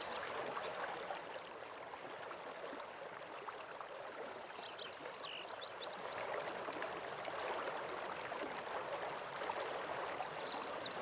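A waterfall rushes steadily in the distance.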